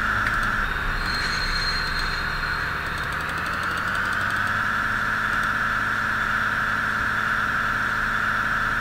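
A train engine hums steadily as the train rolls along the tracks.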